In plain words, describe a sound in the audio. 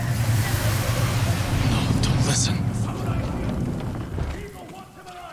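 A deep rushing whoosh roars and then fades away.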